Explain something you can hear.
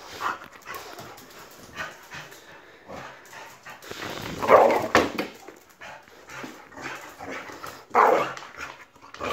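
A dog's claws click and patter on a hard tiled floor.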